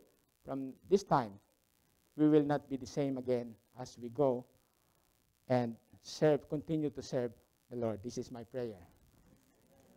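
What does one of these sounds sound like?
A man speaks calmly through a microphone, in short phrases.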